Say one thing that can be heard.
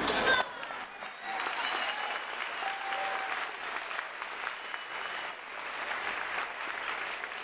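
Small children's feet patter and thump on a stage floor.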